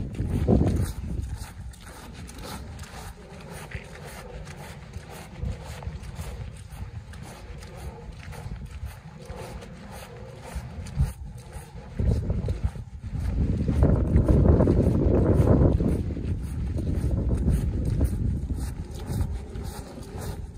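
Boots squelch and step on wet, muddy ground.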